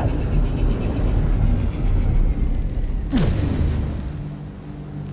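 A deep rumbling roar fills the air and then fades.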